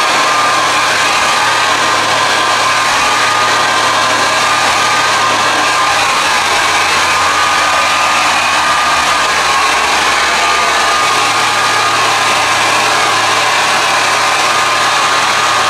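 A hair dryer blows with a loud, steady whoosh close by.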